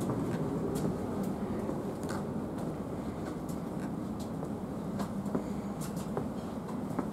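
Train carriage fittings rattle and clatter faintly.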